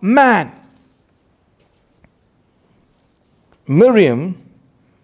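A man reads out slowly and clearly into a close microphone.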